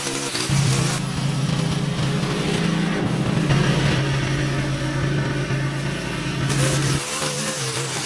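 A lawn mower engine rumbles steadily.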